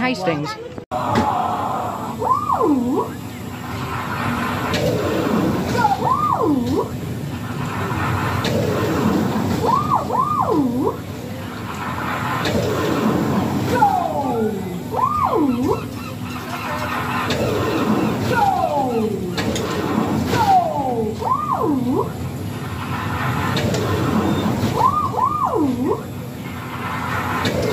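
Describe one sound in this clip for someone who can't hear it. A fairground drop ride whirs and hisses as it bounces up and down over and over.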